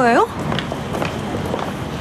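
A young man speaks in surprise, close by.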